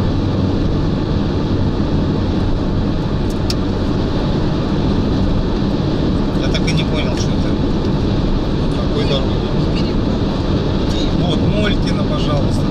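A car engine hums and tyres roar steadily on a road.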